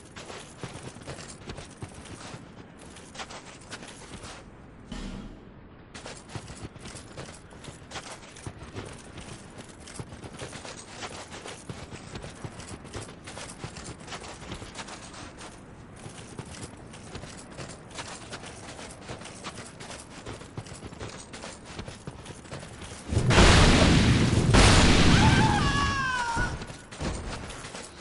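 Armoured footsteps crunch quickly through snow.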